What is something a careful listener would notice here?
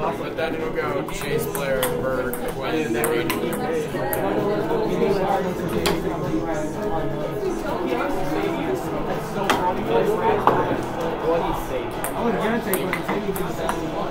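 A ping-pong ball clicks on a table and paddles.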